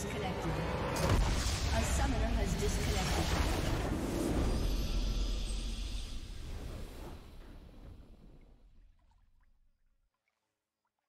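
A game's victory fanfare swells loudly and slowly fades away.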